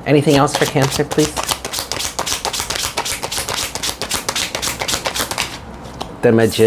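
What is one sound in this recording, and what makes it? Cards riffle rapidly as a deck is shuffled.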